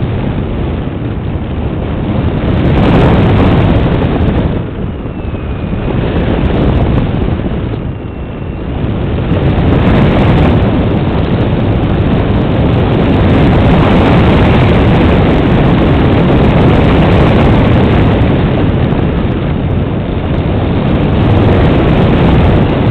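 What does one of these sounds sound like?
Wind rushes loudly past a small model plane in flight, rising and falling in gusts.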